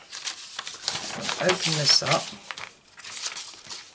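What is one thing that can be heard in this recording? Paper rustles and slides across a hard surface.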